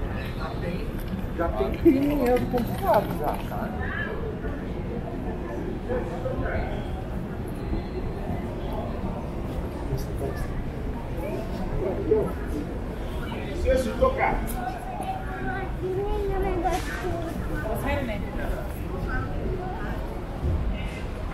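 Many people talk at once on a busy outdoor street.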